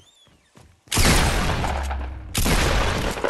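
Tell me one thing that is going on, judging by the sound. Gunshots fire in loud, rapid bursts close by.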